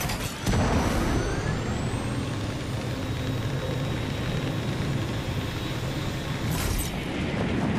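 Small propeller engines whir while gliding.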